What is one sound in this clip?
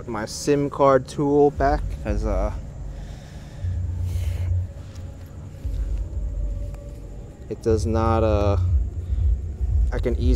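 A young man speaks calmly and close into a microphone.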